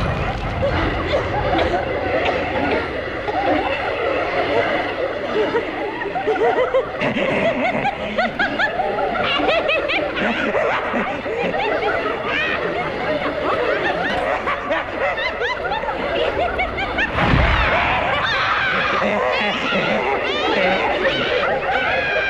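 A young woman screams and cries out in pain.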